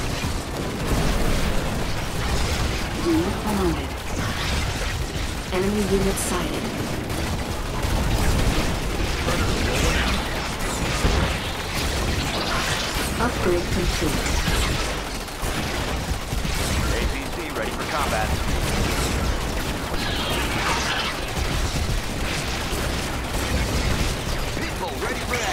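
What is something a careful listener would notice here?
Explosions rumble and crack.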